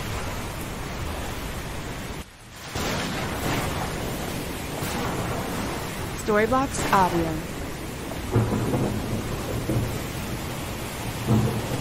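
Thunder rumbles in the distance.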